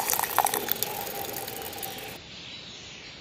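Wet concrete pours and splatters onto stones.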